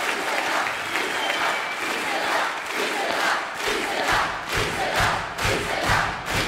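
A large crowd cheers and shouts loudly in a big hall.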